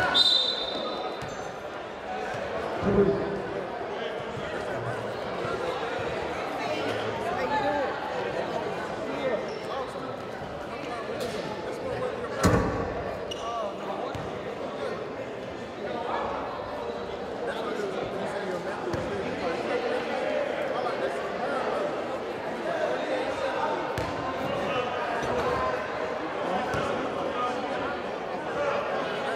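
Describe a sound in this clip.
A crowd chatters throughout a large echoing gym.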